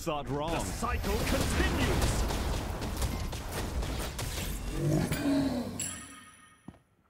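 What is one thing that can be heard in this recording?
Spell blasts and impacts crash in a game battle.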